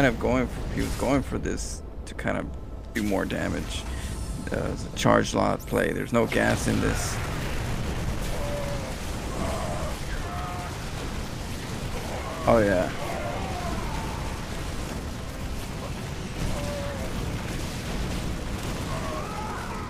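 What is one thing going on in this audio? Weapons fire and small blasts crackle in a fierce battle.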